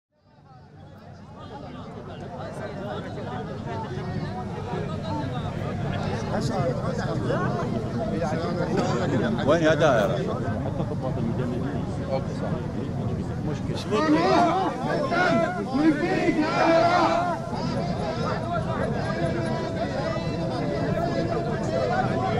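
Many voices murmur and talk in a crowd outdoors.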